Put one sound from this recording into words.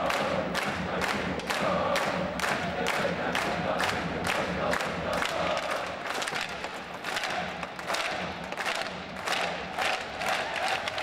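A drum beats in a fast, steady rhythm.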